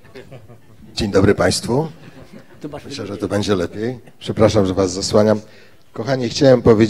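A group of men sing loudly through microphones in harmony.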